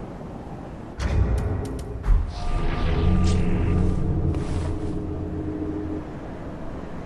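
An armoured figure rolls across stone with a heavy clattering thud.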